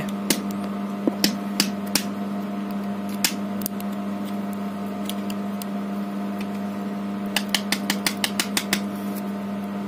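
Small plastic and metal motor parts click and rattle as hands handle them.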